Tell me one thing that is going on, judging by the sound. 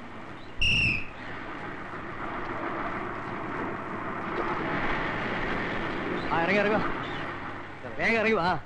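A bus engine rumbles as the bus pulls up.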